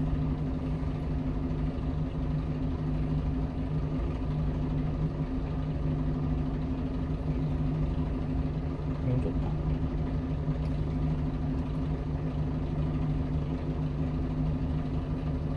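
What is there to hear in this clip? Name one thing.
A car engine idles steadily with a low hum, heard from inside the car.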